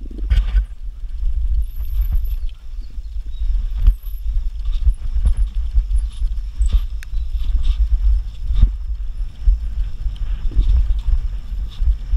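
Bicycle tyres crunch and rattle over a rough dirt track.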